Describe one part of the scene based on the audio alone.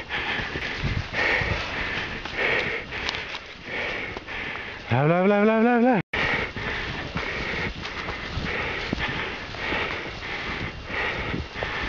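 Feet crunch through deep snow in a steady rhythm.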